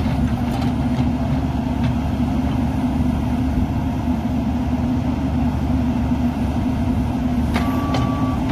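A diesel engine of a small excavator rumbles steadily close by.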